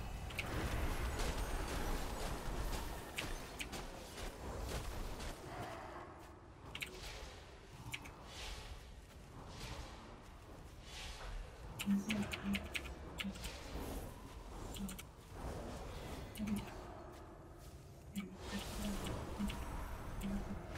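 Magic spells crackle and whoosh in quick bursts.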